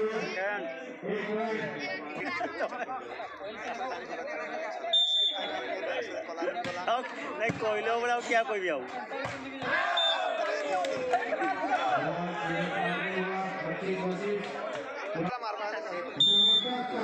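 Young men shout to each other during play.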